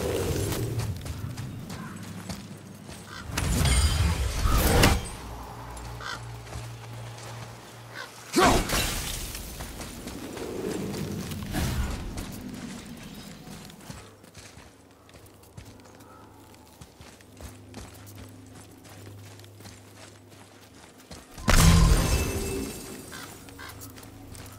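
Heavy footsteps thud on soft ground.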